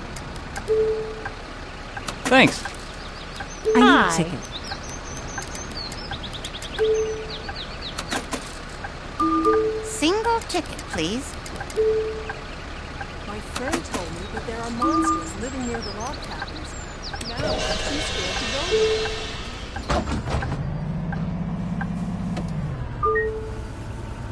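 A ticket machine beeps in short, repeated tones.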